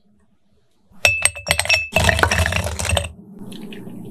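Ice cubes clatter into a glass jar.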